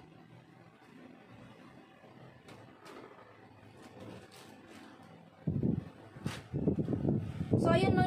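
Fabric rustles as it is handled close by.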